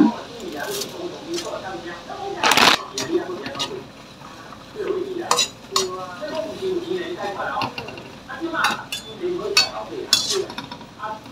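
Metal tongs clink and scrape against a wok.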